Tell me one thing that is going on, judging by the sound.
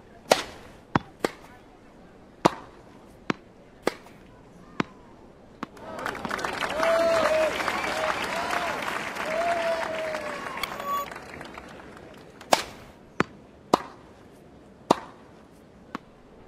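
A tennis ball is struck sharply back and forth with rackets.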